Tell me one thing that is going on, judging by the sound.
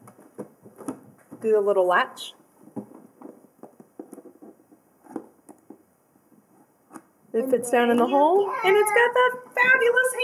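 A cardboard box bumps and scrapes on a hard countertop.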